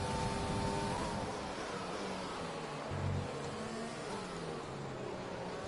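A racing car engine drops in pitch with quick downshifts as the car slows.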